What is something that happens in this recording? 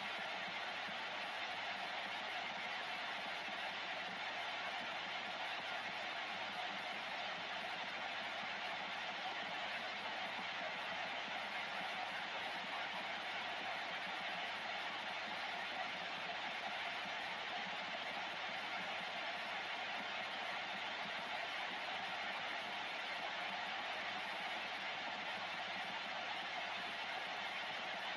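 Steady radio static hisses from a loudspeaker.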